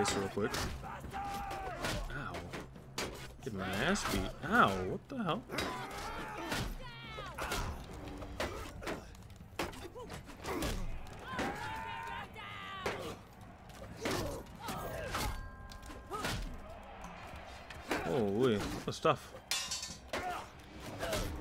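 Swords clash and thud against shields in a fight.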